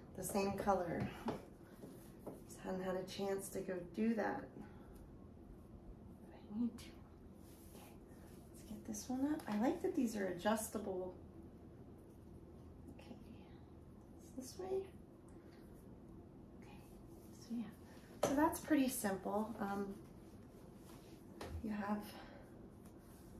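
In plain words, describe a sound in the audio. A young woman speaks softly and playfully close by, in short bursts with pauses.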